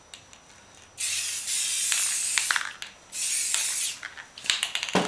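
A spray can hisses in short, loud bursts.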